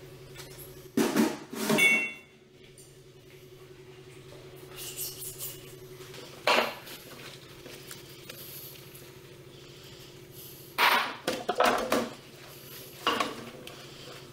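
Dishes clink and clatter against a metal sink.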